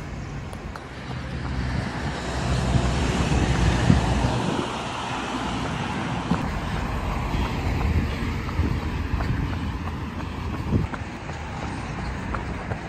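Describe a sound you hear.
Traffic hums steadily on a nearby road.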